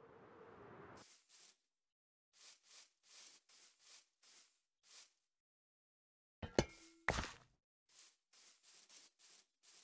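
Footsteps crunch softly over grass at a steady pace.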